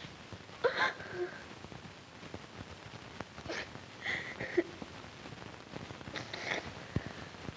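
A woman speaks tearfully and softly, close by.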